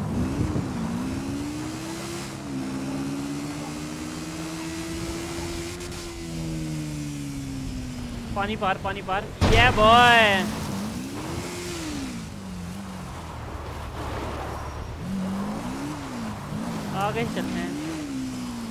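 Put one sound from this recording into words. A motorbike engine hums and revs throughout.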